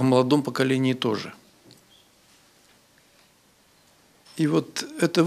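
An elderly man speaks slowly and earnestly into a microphone, with pauses.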